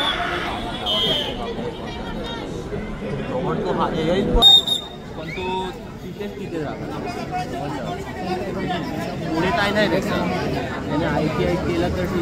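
A large crowd chatters and cheers throughout.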